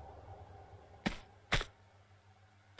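Quick footsteps thud on a soft floor.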